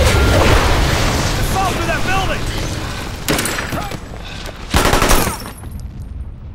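Explosions rumble and roar nearby.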